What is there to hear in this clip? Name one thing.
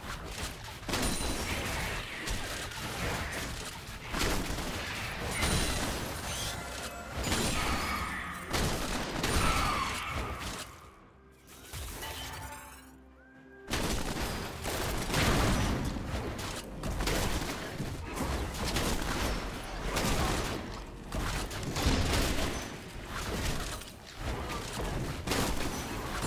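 Spell effects crackle and burst.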